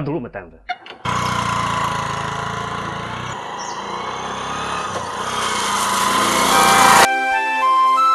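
A motorcycle engine runs as it rides past.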